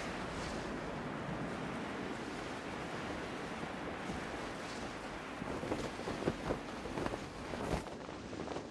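Wind rushes steadily past during a glide.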